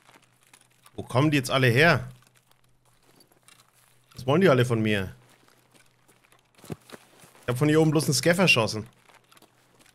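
A man speaks with animation into a close microphone in short bursts.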